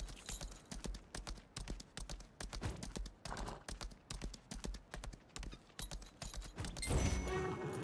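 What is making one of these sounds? A horse gallops with quick, steady hoofbeats.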